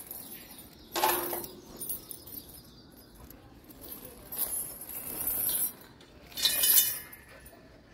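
A dog barks and whines in short bursts close by.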